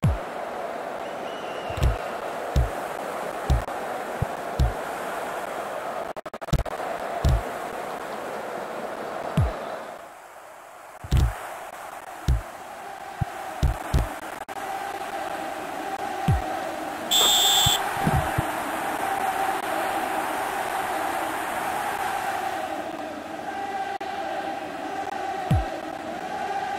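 A football is kicked with dull thuds, again and again.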